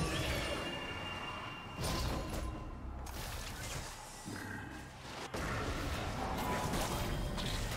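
Magic spells whoosh and crackle in a fast battle.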